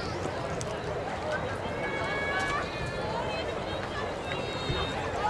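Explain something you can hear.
A small crowd of men and women chatter casually outdoors at a distance.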